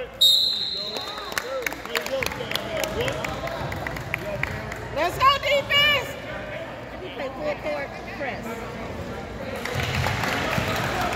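Young players shout and call out across an echoing gym.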